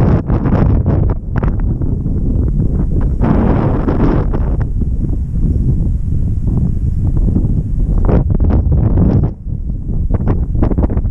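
Strong wind buffets loudly outdoors throughout.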